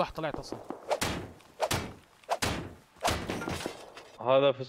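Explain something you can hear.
A metal barrel is struck hard several times and breaks open.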